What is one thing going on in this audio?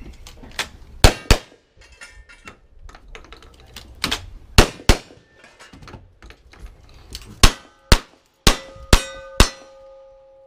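Gunshots crack loudly outdoors, one after another.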